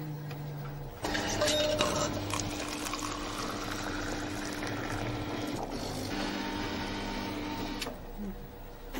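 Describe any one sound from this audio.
A drinks machine hums steadily while it dispenses.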